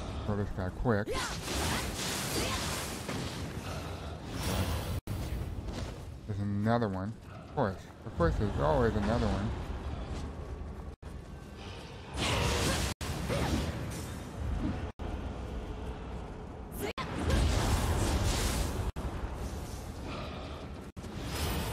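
Swords clash and slash.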